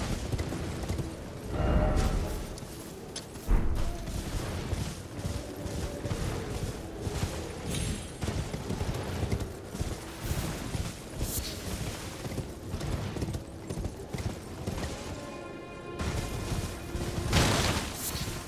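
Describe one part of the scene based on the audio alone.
Footsteps run quickly over soft ground.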